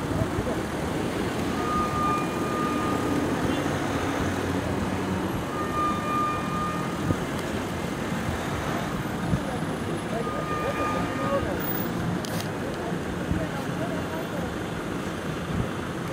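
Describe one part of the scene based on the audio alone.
Car engines rumble steadily in slow, crowded traffic.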